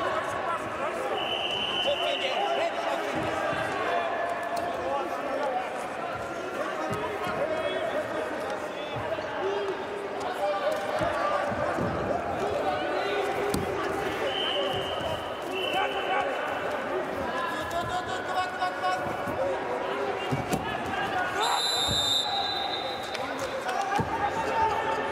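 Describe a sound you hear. Wrestlers' bodies and feet thump and scuff on a padded mat.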